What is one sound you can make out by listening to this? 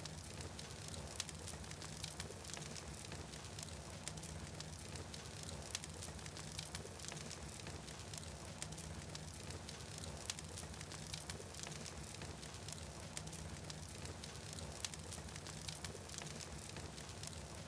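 A large fire roars with a low rumble.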